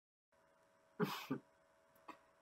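A young man coughs.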